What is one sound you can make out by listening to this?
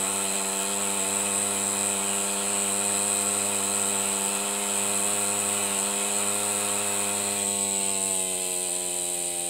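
Steam hisses steadily.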